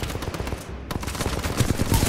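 A weapon clicks and clacks as it is reloaded.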